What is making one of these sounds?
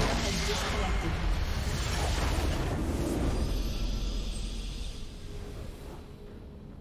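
A structure explodes with a deep rumbling blast.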